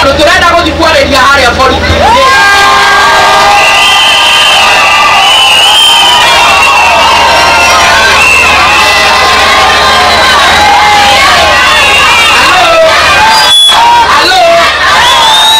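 A large crowd of women sings and chants loudly outdoors.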